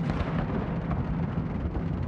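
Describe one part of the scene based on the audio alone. A cannon fires a loud boom that rolls away into the distance.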